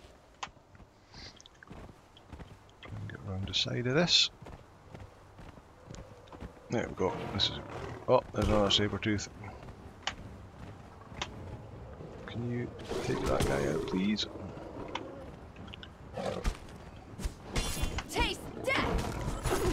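A horse's hooves thud over snow.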